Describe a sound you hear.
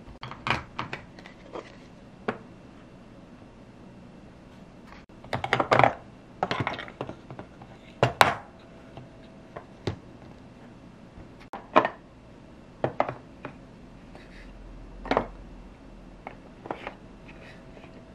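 Plastic toy pieces click and clatter as a hand sets them down.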